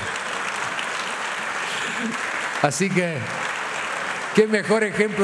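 A large crowd cheers and claps.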